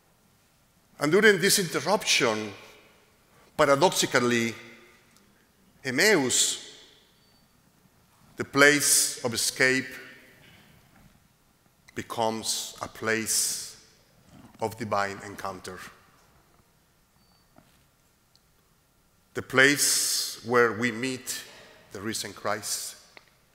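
A middle-aged man speaks slowly and calmly into a microphone, with pauses, in a softly echoing room.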